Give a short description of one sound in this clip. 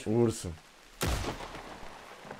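A gunshot cracks and echoes.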